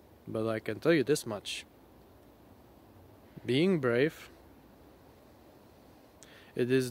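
A man speaks calmly and close by, in short bursts with pauses.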